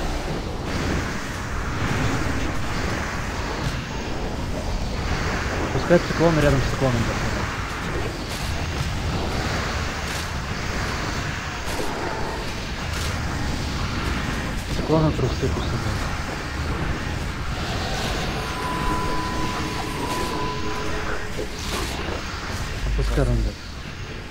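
Spell effects and combat sounds from a game crackle and boom steadily.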